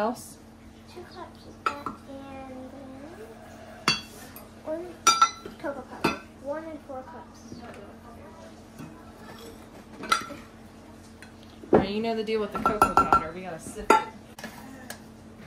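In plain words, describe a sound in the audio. A metal measuring cup taps against a glass bowl.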